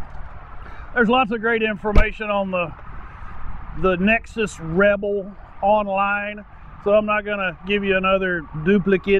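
A middle-aged man talks calmly and close up into a clip-on microphone.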